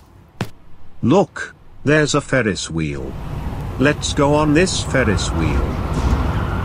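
A man's cartoon voice speaks with animation.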